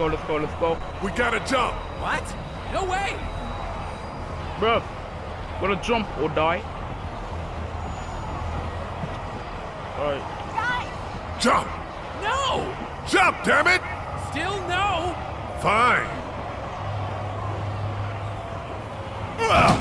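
Two men talk tensely nearby.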